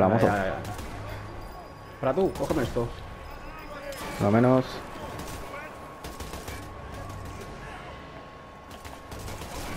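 Gunshots fire in quick bursts indoors.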